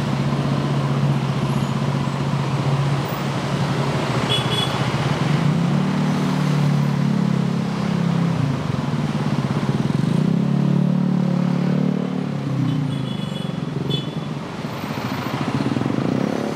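Motor scooters pass close by.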